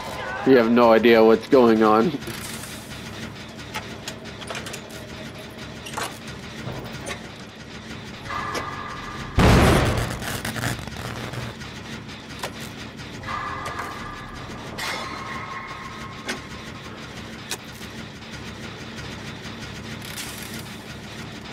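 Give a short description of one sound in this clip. Metal parts clank and rattle as a generator is worked on.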